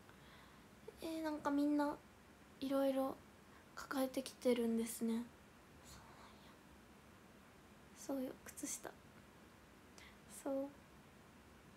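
A young woman speaks close to a microphone in short, soft bursts.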